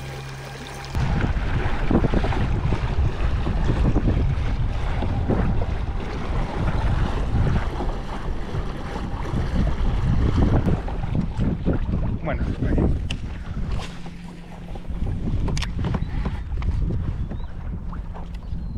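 Water rushes and splashes past a moving boat.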